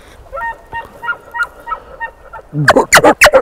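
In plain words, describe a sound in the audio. A bull elk bugles with a high, shrill whistle.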